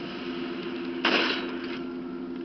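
A rifle fires a single loud shot that echoes briefly.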